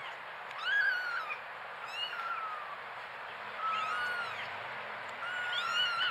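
A kitten pounces through rustling grass.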